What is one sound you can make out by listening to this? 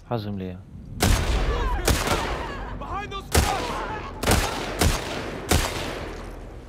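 Rifle shots ring out loudly one after another.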